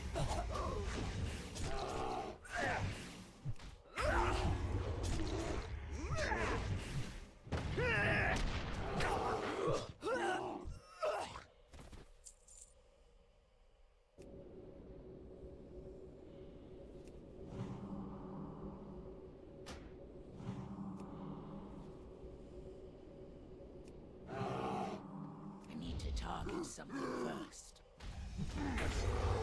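Blades strike and slash in a fast fight.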